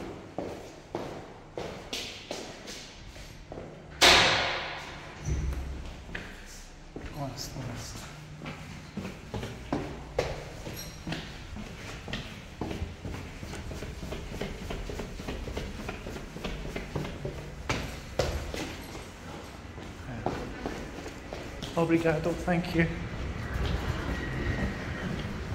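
Footsteps tap on hard stone stairs and floors, echoing in a stairwell.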